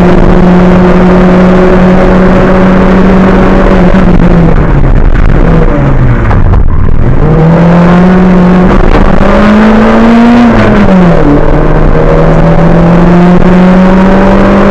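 A race car engine roars loudly, dropping in pitch as it slows for a bend and revving up again.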